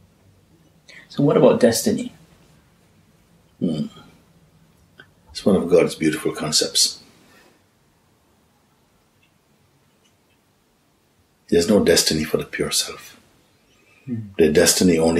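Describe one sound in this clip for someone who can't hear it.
A middle-aged man speaks calmly and thoughtfully, close to a microphone, with pauses between phrases.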